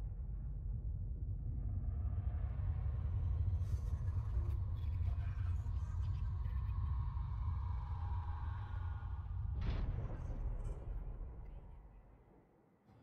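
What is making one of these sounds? A deep, heavy engine rumble drones steadily, then fades away.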